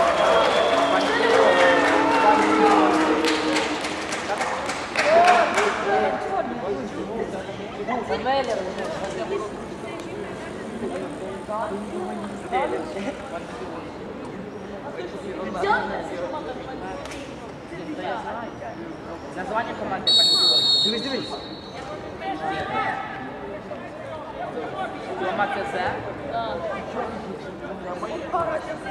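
Men shout and call out to each other across an open field.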